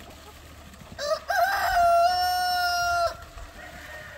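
A rooster crows loudly close by.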